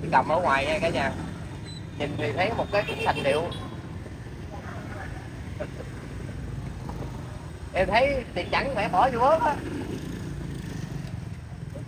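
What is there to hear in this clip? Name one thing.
Motorbikes ride past close by on a street.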